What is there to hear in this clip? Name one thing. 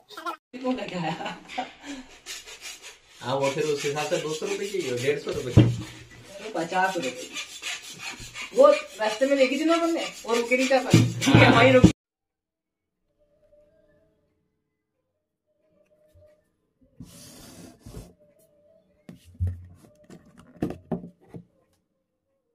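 A wooden speaker box bumps and scrapes as hands handle it.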